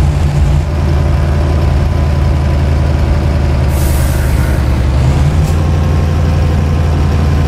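Tyres roll on a road at speed.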